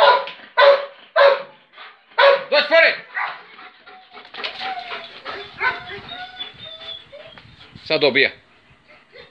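A large dog barks sharply.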